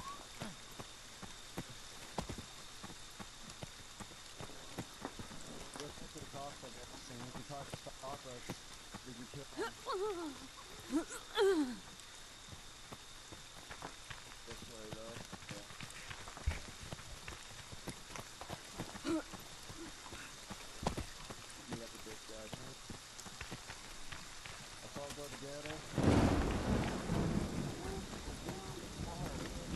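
Footsteps crunch over twigs and leaves on a forest floor.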